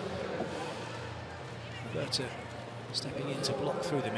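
A volleyball bounces on the court floor.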